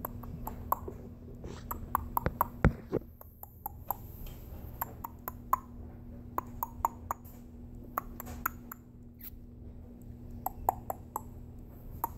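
Plastic toy pieces click and rattle close by.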